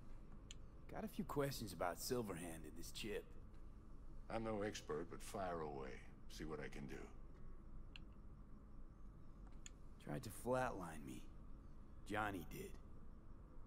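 A young man talks calmly through a microphone.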